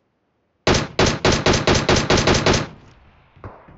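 A rifle fires in a rapid burst of loud shots.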